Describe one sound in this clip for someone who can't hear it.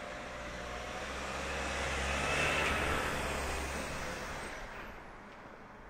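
A van passes close by.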